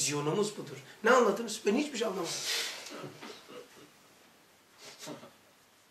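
An older man speaks with feeling, close to a microphone.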